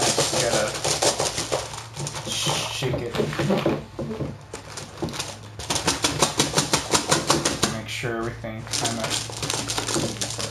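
Cardboard box parts rub and slide against each other.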